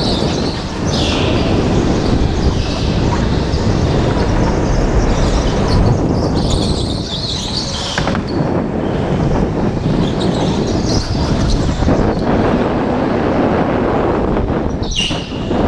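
Kart tyres squeal on a smooth floor in the turns.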